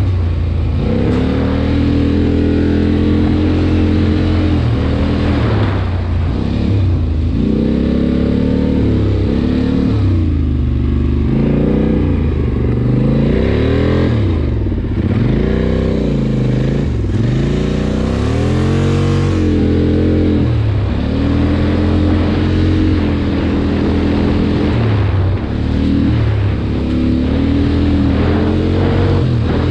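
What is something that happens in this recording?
An all-terrain vehicle engine roars and revs up and down close by.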